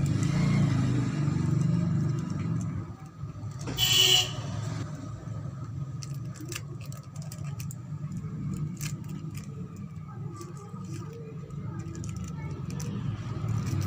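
Paper rustles and crinkles between fingers.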